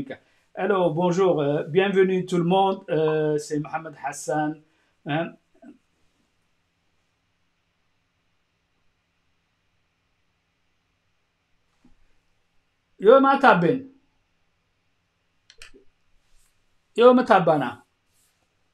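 A middle-aged man speaks calmly into a microphone close up, with pauses.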